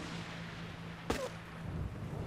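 A gunshot cracks sharply nearby.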